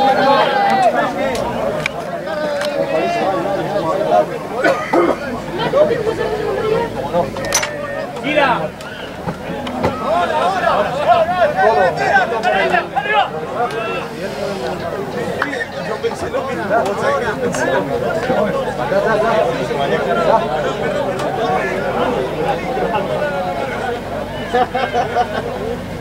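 Men shout calls to each other across an open field.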